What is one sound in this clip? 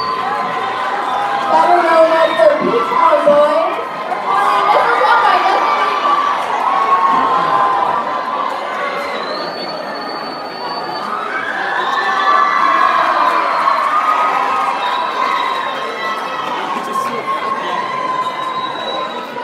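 A group of young men sing together on a stage in a large hall.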